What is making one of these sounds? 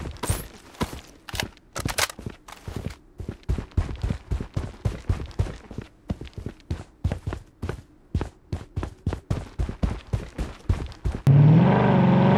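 Footsteps tread quickly over ground.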